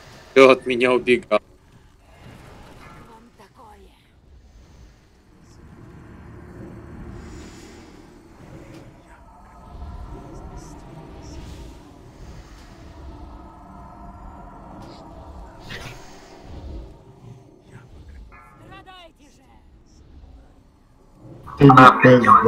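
Magic spells crackle and whoosh in a noisy fantasy battle.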